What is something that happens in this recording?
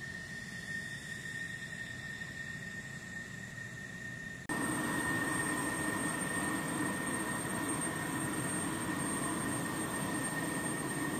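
A jet engine whines steadily nearby.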